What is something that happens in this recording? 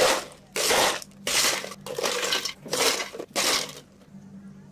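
Ice cubes clatter into plastic cups.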